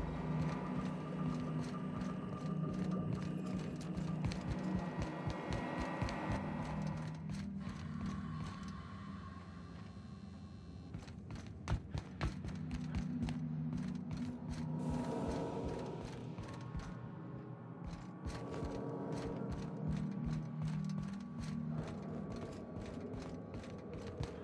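Footsteps tread steadily on a hard metal floor.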